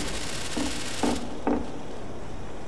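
Short electronic clicks sound.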